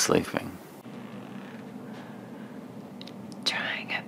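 A young woman speaks in a hushed voice, close by.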